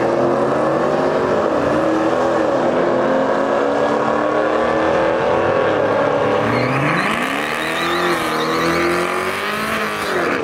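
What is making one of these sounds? A race car engine roars loudly and revs up and down as a car speeds away.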